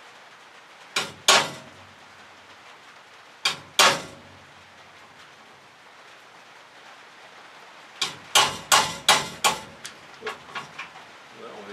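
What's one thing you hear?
A man hammers sharply on a metal frame, with ringing strikes.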